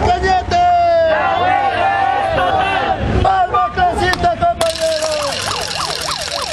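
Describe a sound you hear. A crowd of men and women talk and shout loudly nearby.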